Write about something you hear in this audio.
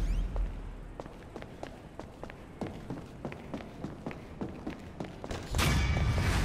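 Footsteps tap steadily on a hard floor indoors.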